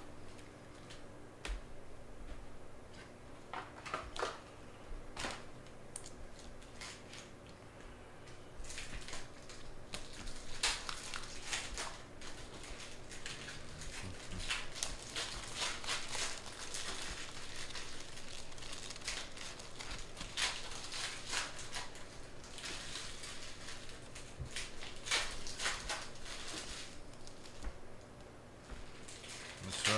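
Trading cards rustle and slide against each other.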